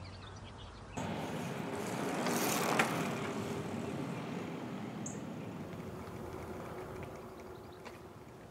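A bicycle rolls past close by on a paved path.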